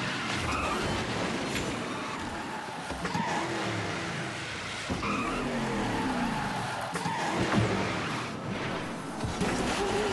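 A kart's engine whines and revs as it races.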